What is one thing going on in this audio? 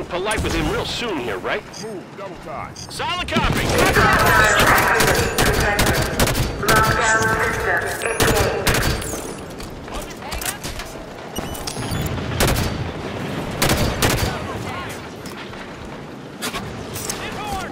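Gunfire from a video game rattles in bursts.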